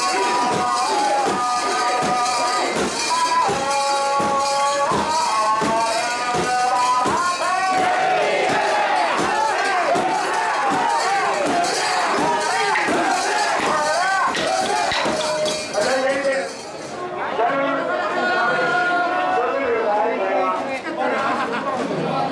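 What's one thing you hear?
A crowd of men chants in unison outdoors.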